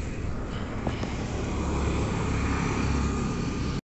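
Traffic hums faintly on a nearby road.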